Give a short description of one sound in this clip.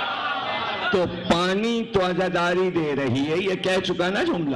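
A man recites loudly through a microphone with a loudspeaker echo.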